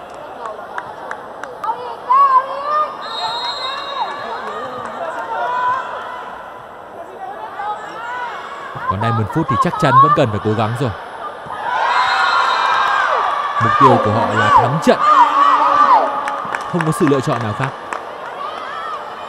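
A crowd cheers and chants loudly in a large echoing hall.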